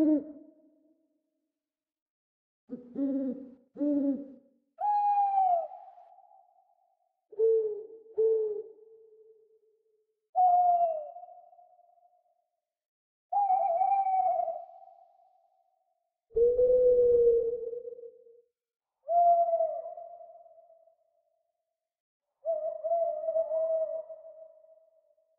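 An owl hoots again and again, in short low calls with pauses in between.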